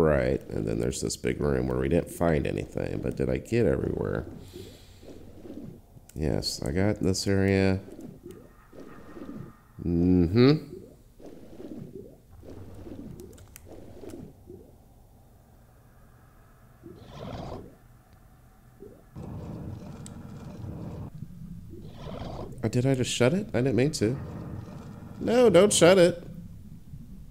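Muffled water gurgles and bubbles underwater.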